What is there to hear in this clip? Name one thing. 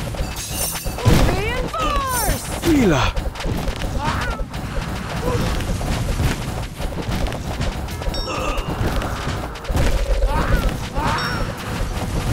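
Magic spells zap and whoosh.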